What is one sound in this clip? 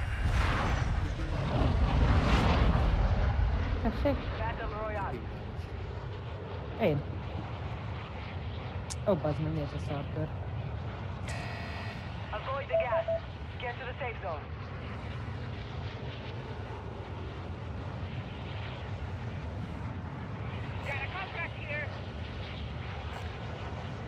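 A large aircraft's engines drone steadily.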